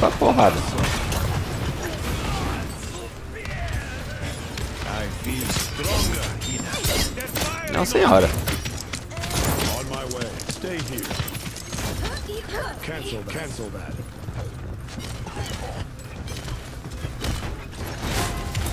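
Gunshots and energy blasts from a video game fire in rapid bursts.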